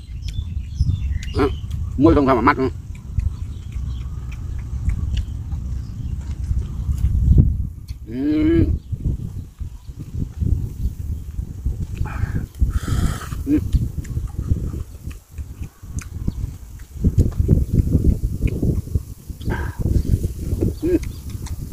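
A man chews food loudly, close by.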